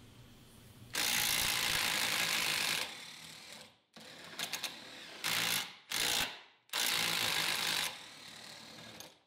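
A threaded metal rod grinds softly as it is screwed in.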